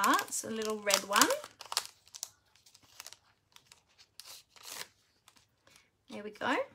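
A plastic sheet crinkles and rustles as it is handled.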